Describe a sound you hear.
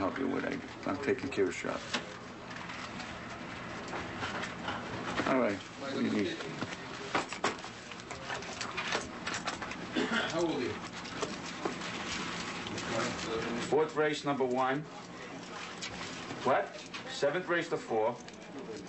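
An adult man talks on a telephone close by.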